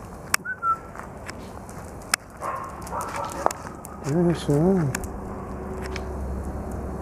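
A dog's claws click on asphalt as it walks.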